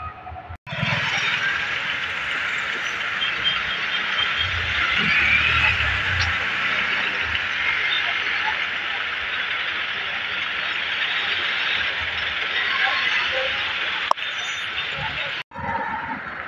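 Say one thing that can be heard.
Vehicle engines idle in a traffic jam outdoors.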